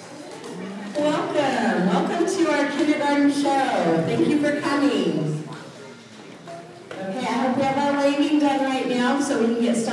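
A crowd of young children sings loudly together in an echoing hall.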